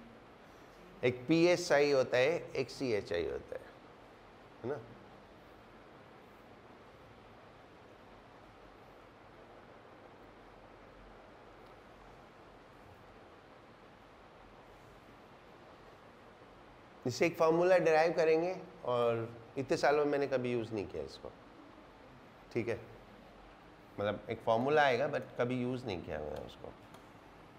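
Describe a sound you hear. A middle-aged man lectures calmly, in bursts with long pauses.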